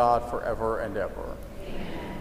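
A man chants briefly through a microphone in an echoing hall.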